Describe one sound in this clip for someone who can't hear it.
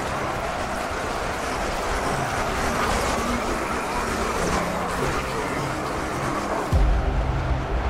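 Explosions boom across a battlefield.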